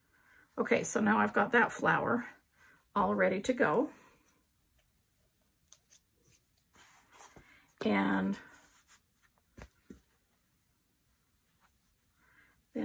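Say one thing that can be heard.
Fabric pieces rustle softly under fingers.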